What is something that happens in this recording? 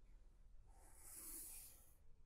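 A pencil scratches softly along a ruler on paper.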